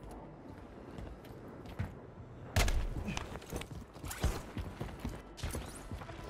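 Footsteps run quickly over concrete.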